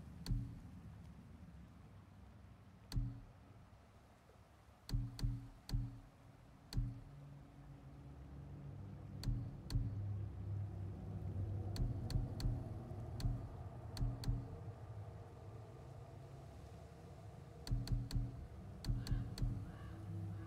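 Menu clicks tick sharply, one by one.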